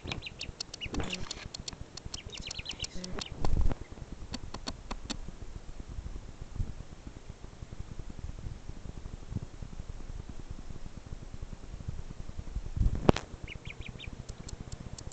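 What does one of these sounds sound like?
A duckling peeps in short, high chirps.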